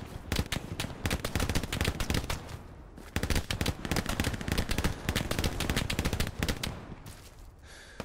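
Footsteps crunch quickly on a gravel path.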